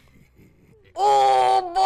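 A young woman shouts loudly into a microphone.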